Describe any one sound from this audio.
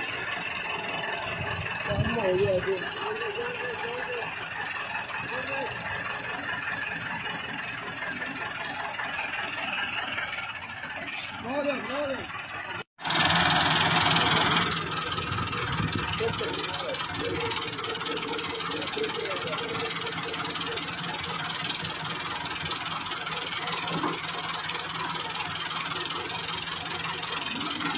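A tractor engine runs with a steady rumble.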